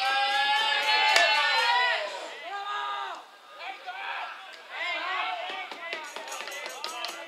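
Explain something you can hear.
A group of young men cheer and shout loudly outdoors.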